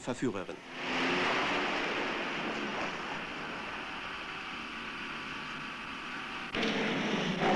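A car engine roars as it speeds away.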